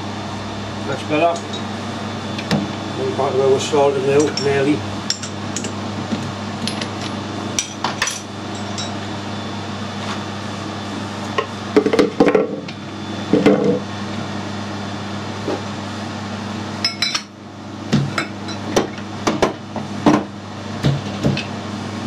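Metal parts clink and clank against each other.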